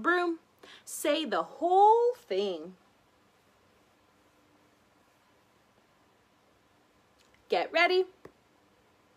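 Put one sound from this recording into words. A young woman speaks close by, slowly and clearly, as if teaching.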